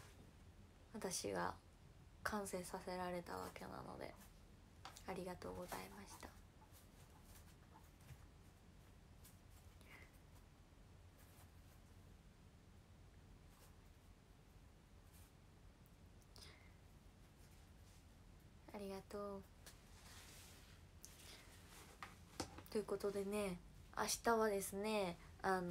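A young woman speaks close to a microphone in short bursts with pauses.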